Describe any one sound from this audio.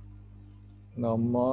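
A man speaks through a microphone on an online call.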